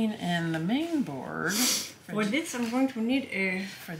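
A second young woman speaks up calmly nearby.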